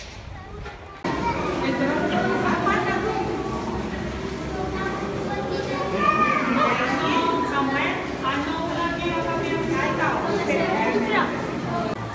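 A crowd of men and women chatter in an echoing space.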